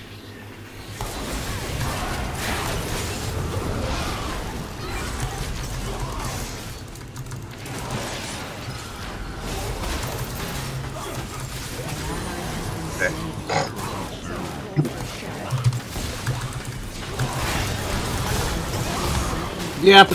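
Game sound effects of a battle clash and crackle.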